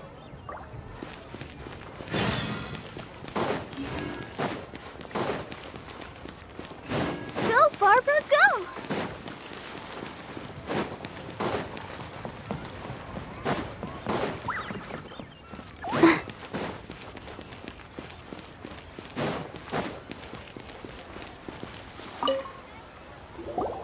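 Footsteps tap quickly and evenly on hard ground.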